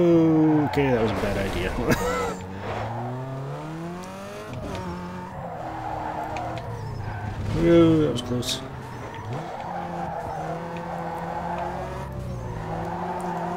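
A car engine revs up and down as gears shift.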